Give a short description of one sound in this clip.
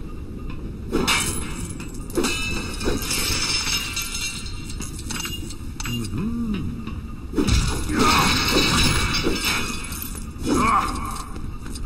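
Small coins jingle in quick bursts.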